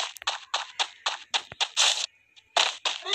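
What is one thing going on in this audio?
Footsteps run quickly on a hard surface.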